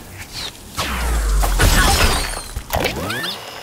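A wooden tower crashes and shatters with a loud burst.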